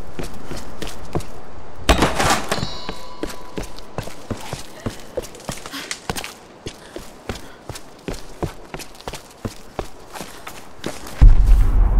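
Footsteps crunch steadily over rocky ground.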